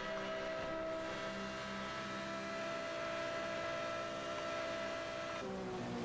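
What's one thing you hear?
A racing car engine roars at a steady high pitch.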